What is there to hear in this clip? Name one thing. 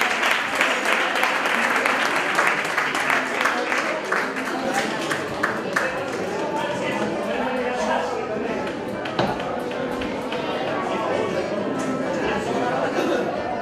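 A band plays drums and guitars.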